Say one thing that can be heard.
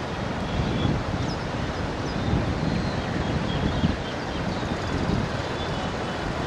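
Wind blows hard outdoors, buffeting the microphone.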